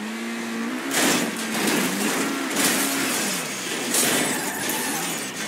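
A car crashes hard into a lamp post with loud crunching impacts.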